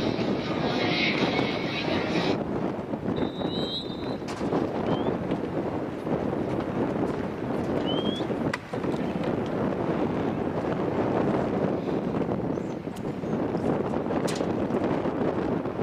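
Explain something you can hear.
Wind blows hard outdoors, rumbling against the microphone.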